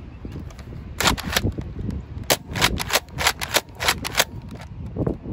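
A toy foam blaster fires with quick, sharp bursts.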